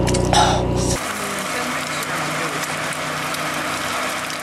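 An egg sizzles in a frying pan.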